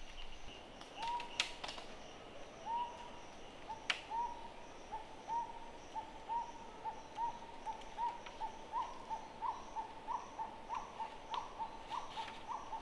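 Bamboo poles knock and clatter on a roof frame.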